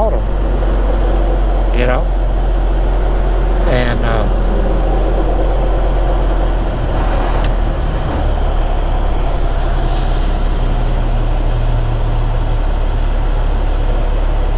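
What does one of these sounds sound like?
A truck engine rumbles low and steady while driving.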